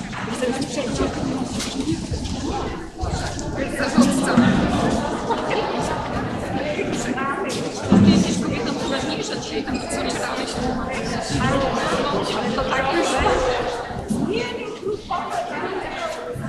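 A crowd of children and adults chatters in a large echoing hall.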